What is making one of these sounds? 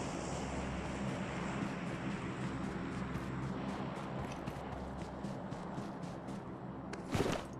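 Grass rustles with a soft, regular swishing.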